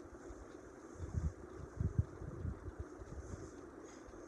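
Bedding rustles as a person shifts and sits up.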